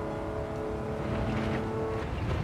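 Tyres rumble over a kerb.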